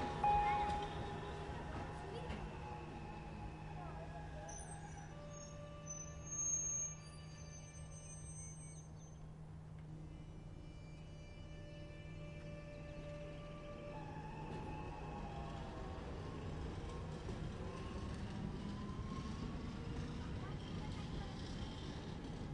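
A train rolls slowly along the rails with a low rumble.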